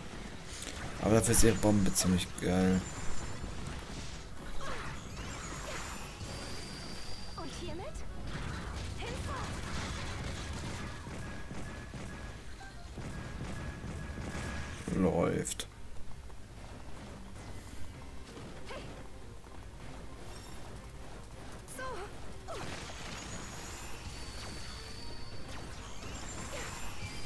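Sword strikes and explosions crash in quick bursts.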